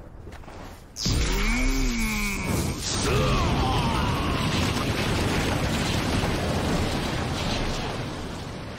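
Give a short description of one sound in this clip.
A crackling energy blast roars.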